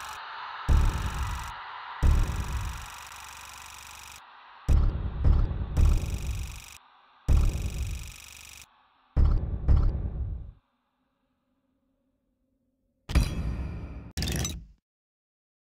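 Heavy booming thuds strike one after another, each ringing out briefly.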